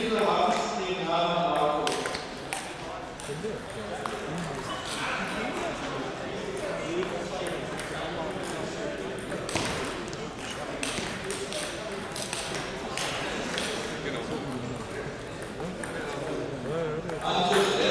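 Voices murmur in a large echoing hall.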